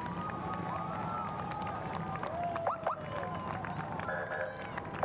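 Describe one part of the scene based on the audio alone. A crowd of spectators cheers along a street.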